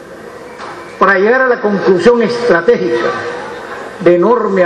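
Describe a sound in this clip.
An elderly man speaks emphatically into a microphone, heard through loudspeakers in a large hall.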